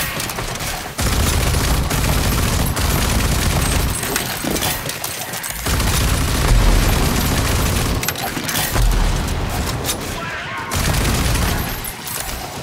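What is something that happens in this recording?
A gun fires rapid bursts of loud shots.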